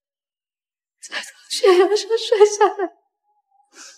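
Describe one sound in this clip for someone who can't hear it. A young woman speaks tearfully, her voice breaking as she cries.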